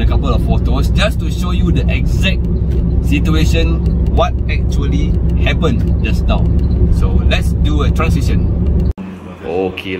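A man talks calmly inside a car.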